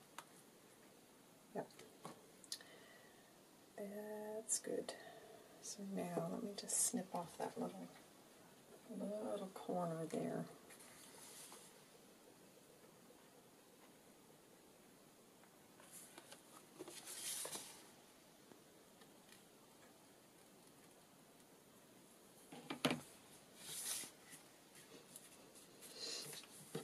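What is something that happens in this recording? Paper rustles and crinkles as it is handled and folded.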